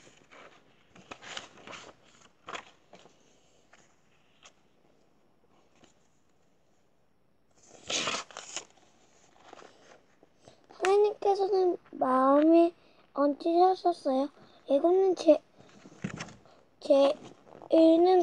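Pages of a book rustle as they are turned by hand.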